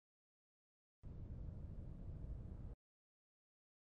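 A clock ticks.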